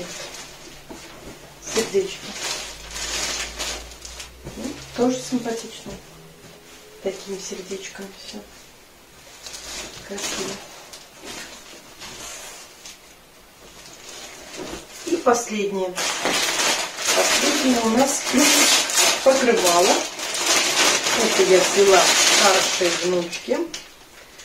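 Fabric rustles as it is unfolded and handled.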